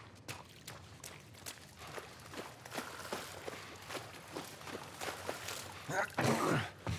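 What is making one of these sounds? Footsteps splash steadily through shallow water.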